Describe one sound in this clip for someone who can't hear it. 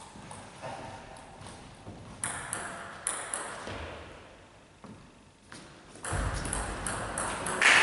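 A ping pong ball clicks back and forth between paddles and bounces on a table in an echoing hall.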